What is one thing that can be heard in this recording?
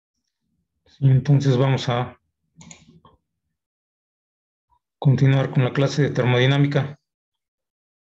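A young man speaks calmly into a microphone, in short bursts with pauses.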